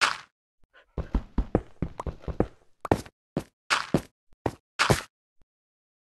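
Blocks crunch quickly again and again as they are dug out in a video game.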